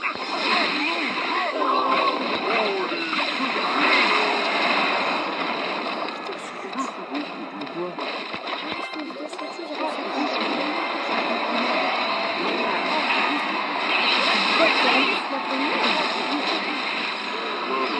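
Clashing battle sound effects ring out.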